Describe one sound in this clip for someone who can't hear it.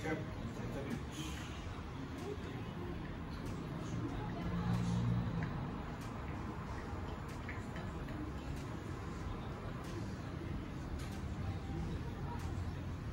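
A fan hums and whirs steadily nearby.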